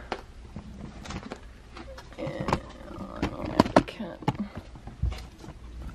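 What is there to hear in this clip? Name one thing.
A plastic box slides and bumps on a table.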